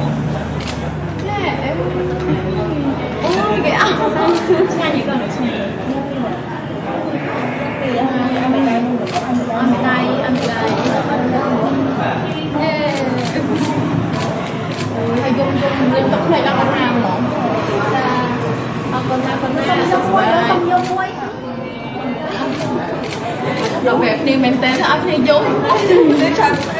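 A woman speaks with animation into a close microphone.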